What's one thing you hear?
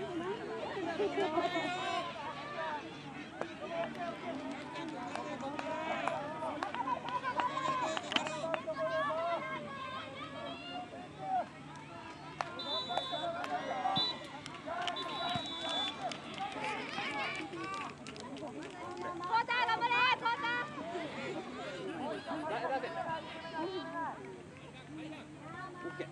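Young players shout and call to each other outdoors on an open field.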